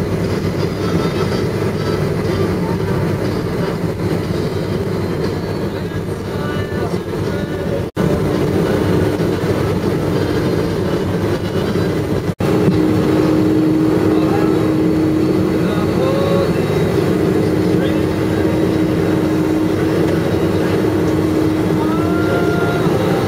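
A jet airliner's engines rumble and hum steadily as it taxis.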